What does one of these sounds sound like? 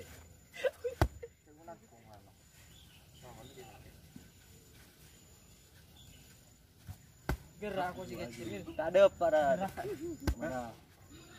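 A boy punches a hanging sack with dull thuds.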